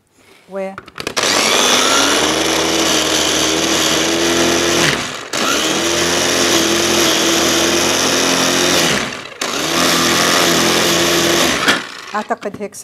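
A small electric food processor whirs loudly in bursts, with short pauses between them.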